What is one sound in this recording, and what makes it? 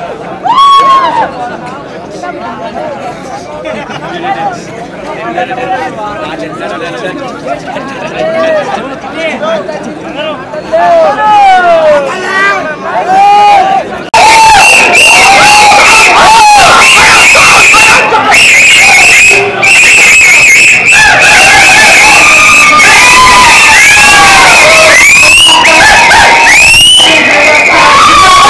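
A large crowd of young men shouts and cheers loudly outdoors.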